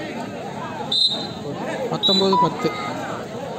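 A man shouts close by.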